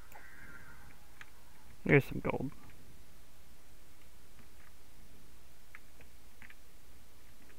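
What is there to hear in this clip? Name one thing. Short crunching pops sound as blocks break in a video game.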